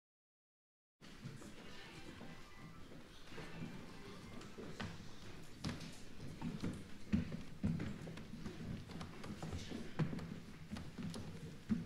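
An audience murmurs quietly in an echoing hall.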